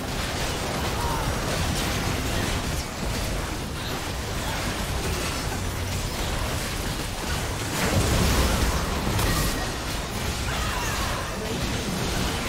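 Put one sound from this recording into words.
Video game battle effects clash and burst in quick succession.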